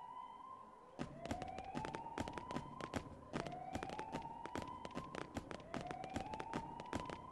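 Footsteps clack on a hard floor.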